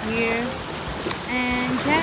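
Water splashes from a tossed bucket.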